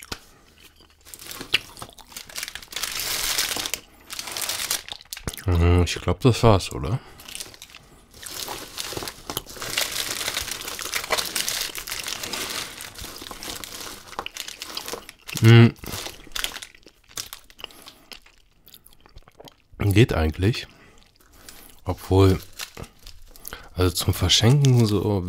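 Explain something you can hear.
Plastic candy wrappers crinkle and rustle as hands move them.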